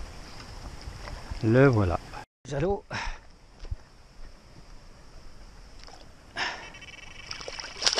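A fish splashes in shallow water.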